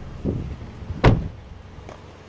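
A car door slams shut with a heavy thud.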